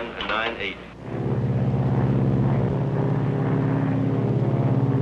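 A propeller plane drones steadily overhead.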